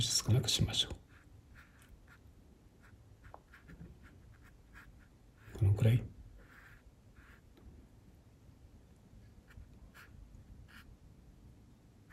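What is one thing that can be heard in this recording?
A paintbrush dabs and strokes softly on paper.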